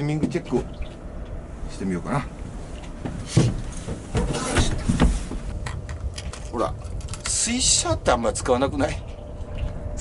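A man speaks casually, close by.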